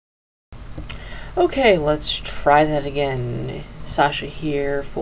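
A young woman speaks with animation, close to a webcam microphone.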